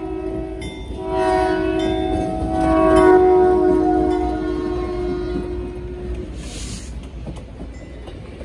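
Train wheels clatter on the rails as passenger cars roll by.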